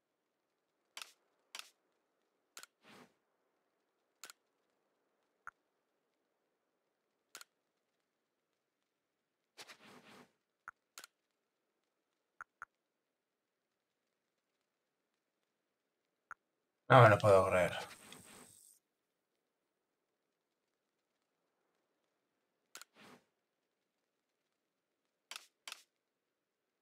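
Short electronic menu blips click now and then.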